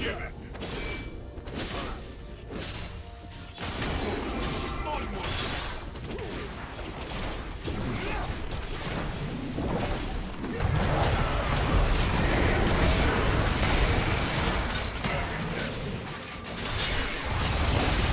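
Game spell effects and hits crackle and boom in a fast fight.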